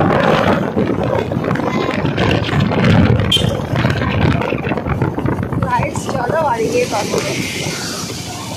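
A young girl speaks and laughs close by.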